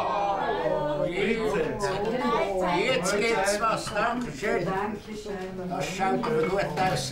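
A man and a woman chat at a table nearby.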